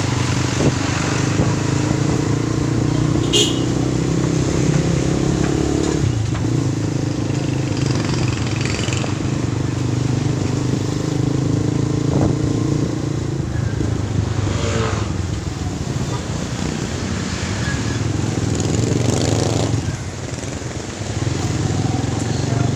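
Motor traffic passes along a street.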